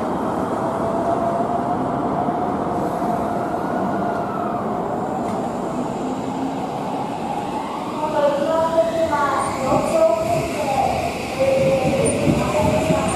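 Train brakes squeal and whine as a train slows.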